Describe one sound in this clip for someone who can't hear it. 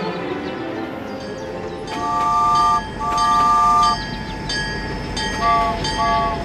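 A toy train rattles and whirs along its plastic track.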